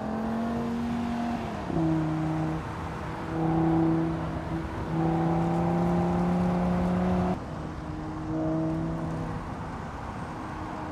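A sports car engine roars as the car accelerates, its pitch dropping and climbing through gear changes.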